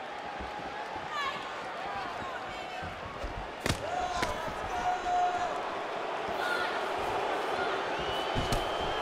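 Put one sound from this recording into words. A crowd murmurs and cheers steadily in a large arena.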